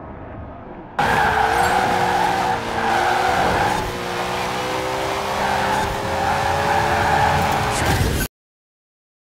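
A racing car engine roars at high speed, its pitch slowly rising.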